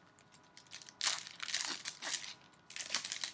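Foil wrapping crinkles and tears as a card pack is opened.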